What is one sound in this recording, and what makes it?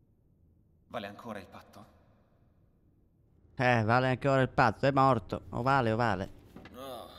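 A young man speaks in a calm, low voice.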